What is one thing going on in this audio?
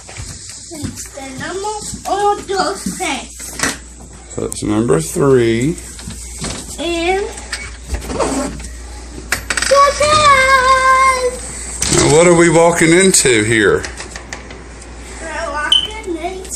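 A young boy talks and squeals excitedly, close by.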